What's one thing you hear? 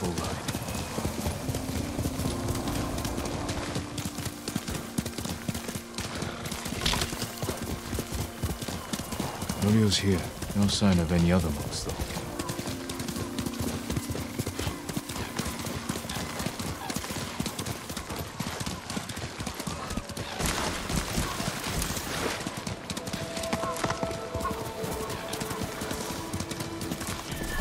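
A horse gallops with rapid, steady hoofbeats.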